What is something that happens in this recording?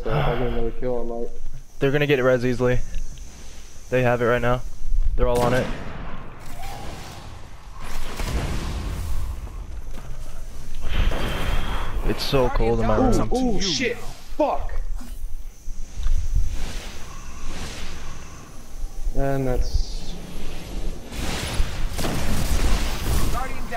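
Rifle shots crack in a video game.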